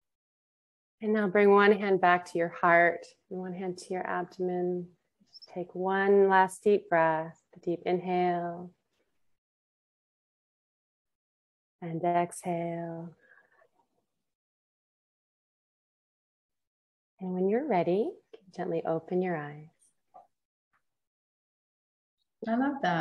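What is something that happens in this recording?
A woman speaks calmly and softly over an online call, in short phrases with pauses.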